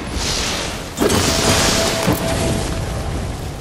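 A fiery whoosh roars.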